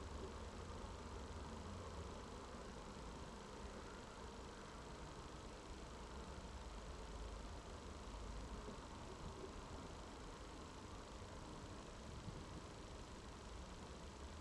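Bees buzz steadily around a hive.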